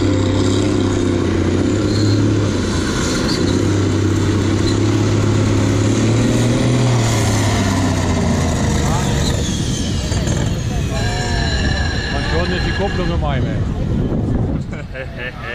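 A tractor engine roars loudly and strains under heavy load.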